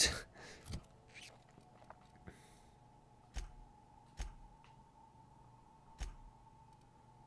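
Soft clicks tick through a menu.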